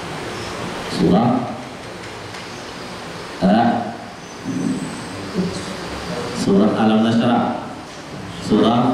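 A young man speaks slowly and calmly into a microphone, heard through a loudspeaker, with pauses between phrases.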